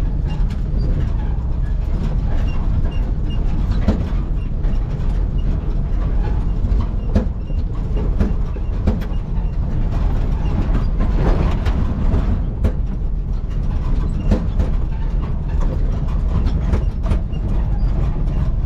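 Loose items rattle and knock inside the cab.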